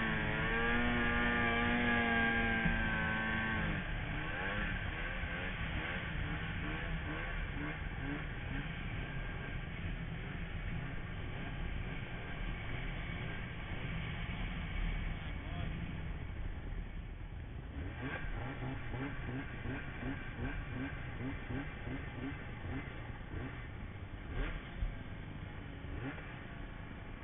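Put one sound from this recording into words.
A snowmobile engine roars loudly close by, changing pitch as it revs.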